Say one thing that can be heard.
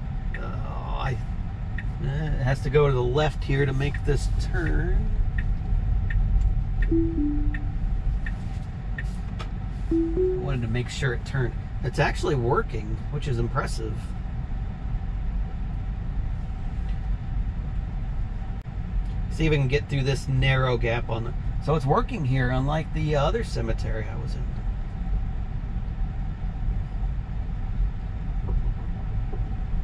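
A car rolls slowly along a gravel road with a low steady rumble.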